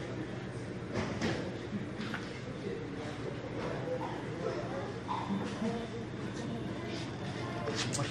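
Knocks and thuds sound nearby as a man handles a door.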